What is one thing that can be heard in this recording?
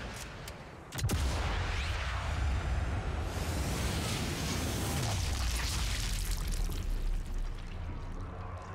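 A bullet whooshes through the air with a deep, slowed-down rumble.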